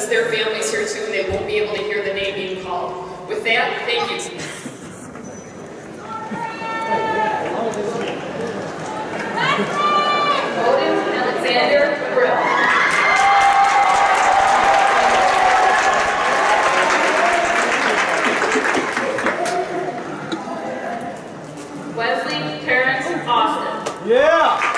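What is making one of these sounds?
A woman reads out names through a loudspeaker in a large hall.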